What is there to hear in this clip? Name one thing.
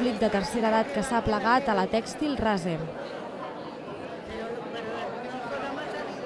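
A crowd of elderly people chatters in a large echoing hall.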